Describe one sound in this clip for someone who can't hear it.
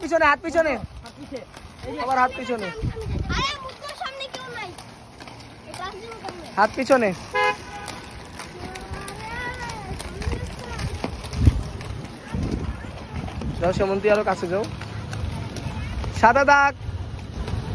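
Children talk and call out close by.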